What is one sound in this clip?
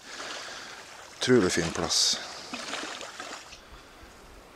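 Small waves lap gently against a shore.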